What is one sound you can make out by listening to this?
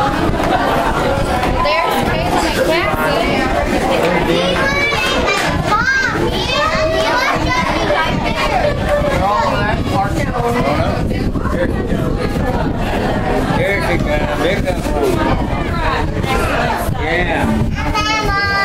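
Several adults and children talk and chatter close by.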